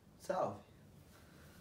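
A young man says a short word close by.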